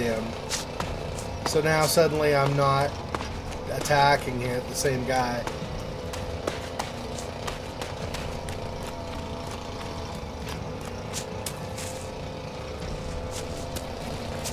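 Footsteps run over dirt and grass.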